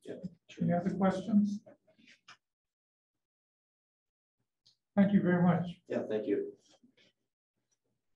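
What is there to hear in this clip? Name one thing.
A woman speaks calmly over an online call, in short bursts.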